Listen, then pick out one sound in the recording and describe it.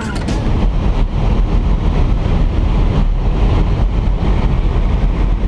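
Wind rushes loudly through an open aircraft door.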